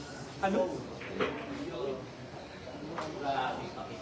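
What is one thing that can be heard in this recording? Billiard balls knock together and clack.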